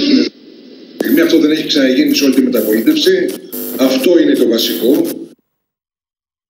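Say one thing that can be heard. A man speaks with animation, heard through a broadcast.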